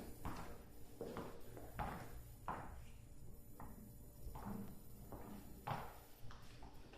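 Footsteps thud on a hard floor nearby.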